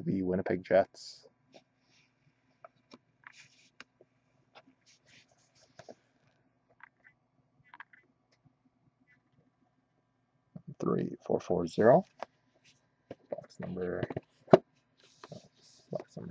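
A cardboard box is handled and rubs softly against hands.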